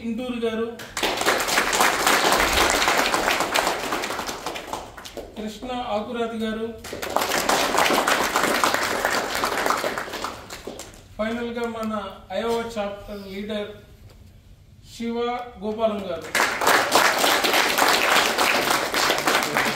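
A group of people applaud in bursts.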